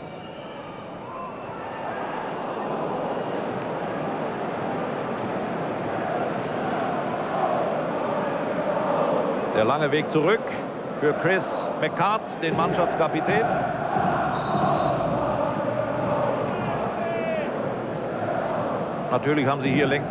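A large stadium crowd roars and chants steadily, growing louder.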